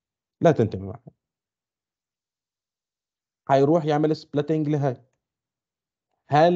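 A man speaks calmly and clearly into a microphone, in short phrases with pauses.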